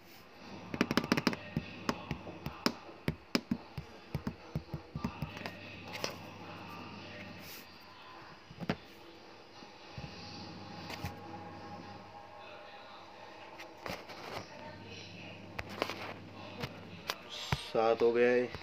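Game chips clink onto a table in quick clicks.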